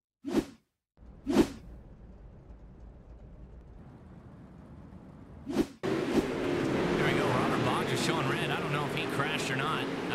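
Several racing engines roar together.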